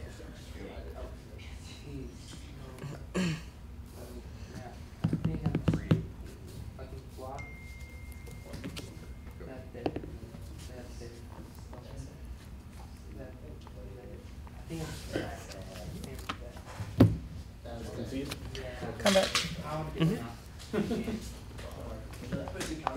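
Cards slide and tap softly on a cloth mat.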